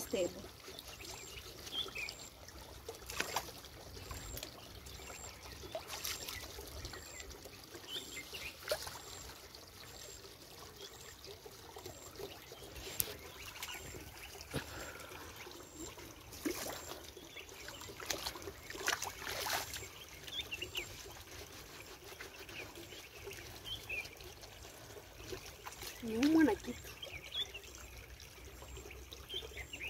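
Muddy water splashes and sloshes around bare feet.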